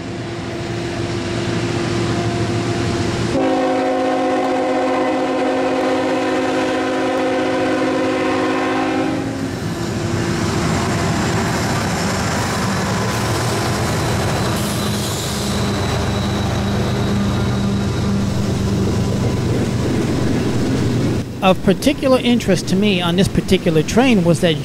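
Diesel locomotives rumble past close by.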